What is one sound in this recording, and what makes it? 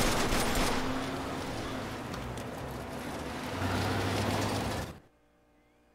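A car engine rumbles.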